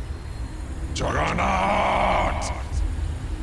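A magical spell shimmers.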